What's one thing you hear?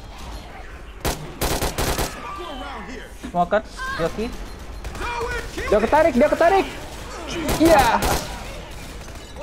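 A rifle fires in short bursts.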